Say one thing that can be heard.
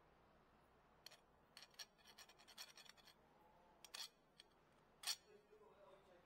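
Metal parts clink and scrape against each other.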